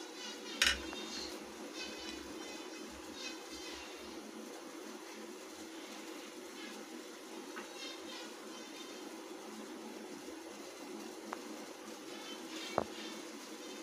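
Metal pans clink as they are handled.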